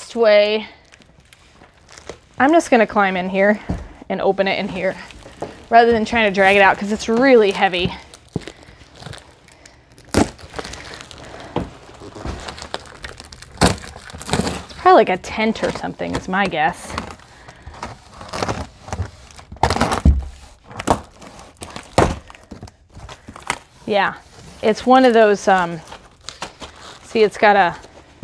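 Cardboard boxes rustle and thump as they are handled.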